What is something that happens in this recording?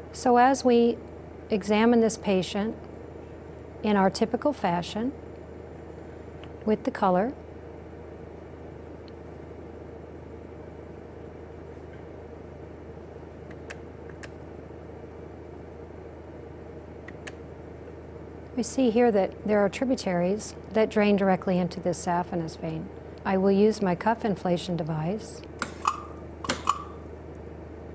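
A middle-aged woman speaks calmly and clearly, close to a microphone.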